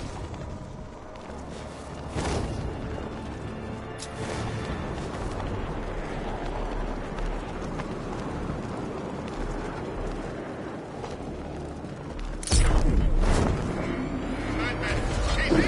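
Wind rushes steadily past while gliding through the air, with louder gusts.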